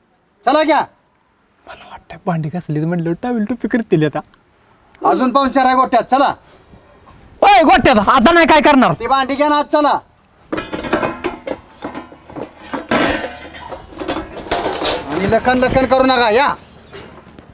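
A man talks with animation nearby.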